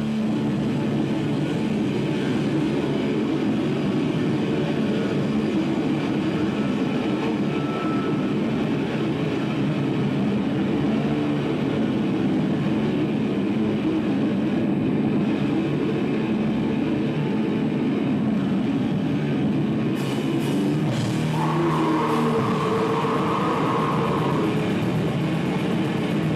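A distorted electric guitar plays loudly, echoing off bare walls.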